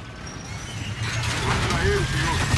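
A heavy door slides open with a loud rushing roar.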